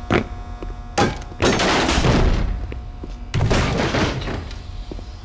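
Wooden crates smash and splinter under heavy blows.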